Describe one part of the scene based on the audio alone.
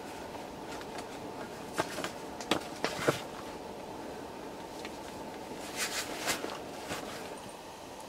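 Camping gear rustles and clicks as it is handled close by.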